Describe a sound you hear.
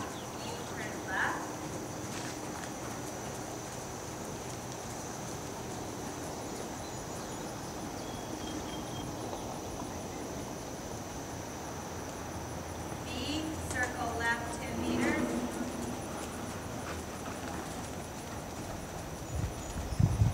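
A horse trots with soft, muffled hoofbeats on sand.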